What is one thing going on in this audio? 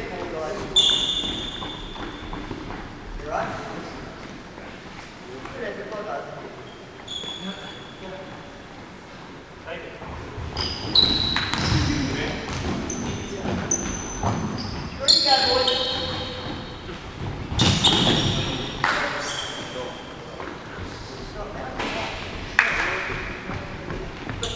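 Men shout to each other across an echoing hall.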